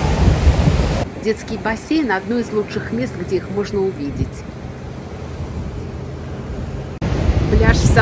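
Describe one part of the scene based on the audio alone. Surf crashes onto a beach in the distance.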